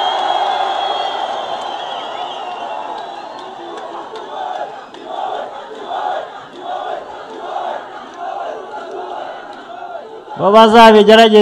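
A large crowd cheers and chants rhythmically outdoors.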